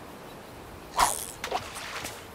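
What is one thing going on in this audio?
A fishing line is cast and a float splashes into water.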